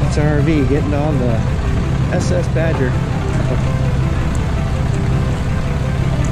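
A heavy-duty pickup truck's engine runs.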